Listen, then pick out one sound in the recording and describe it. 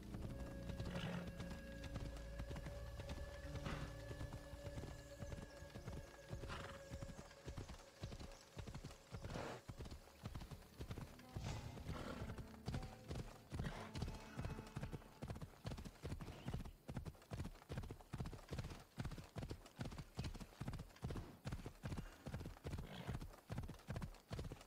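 A horse gallops steadily, hooves pounding on a dirt path.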